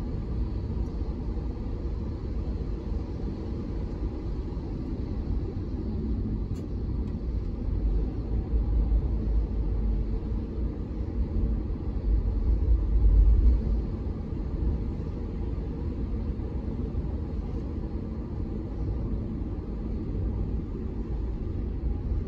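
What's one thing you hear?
A car drives along a wet road, heard from inside with a low rumble of tyres.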